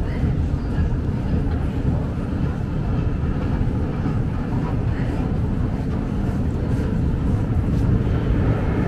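An escalator hums and rumbles steadily in a large echoing hall.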